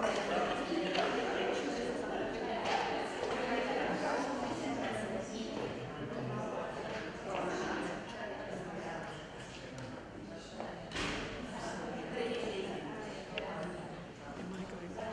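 An audience of adults murmurs and chatters quietly in an echoing hall.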